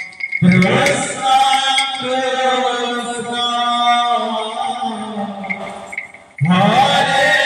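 A group of young men sing together loudly outdoors.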